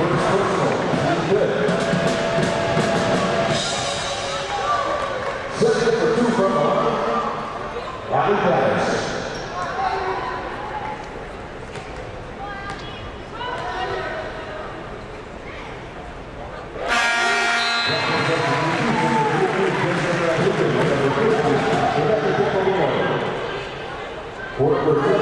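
A crowd murmurs and calls out in a large echoing arena.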